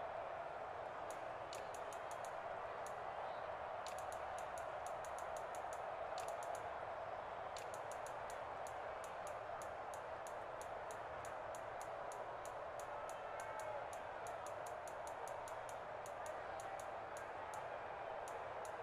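A video game's menu ticks with short soft clicks as a list scrolls.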